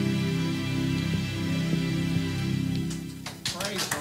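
A keyboard plays a sustained chord.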